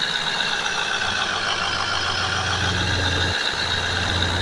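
A vehicle engine idles with a low, steady hum.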